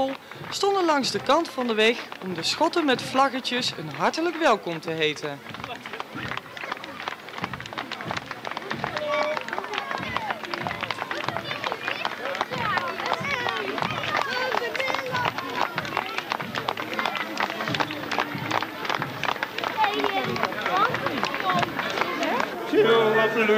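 Children cheer and shout excitedly.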